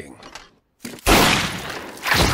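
A gunshot rings out.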